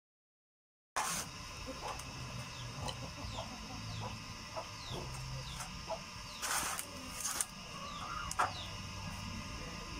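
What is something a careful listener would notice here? A hand-powered bow drill whirs and scrapes as it spins back and forth.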